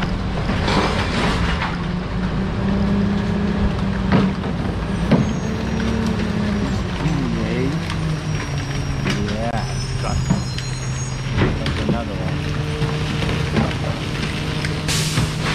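A garbage truck engine hums steadily nearby.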